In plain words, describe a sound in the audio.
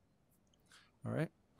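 A middle-aged man speaks a short word into a microphone.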